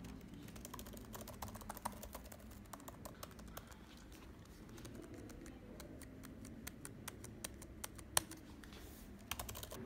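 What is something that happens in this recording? Fingers tap and click on laptop keys.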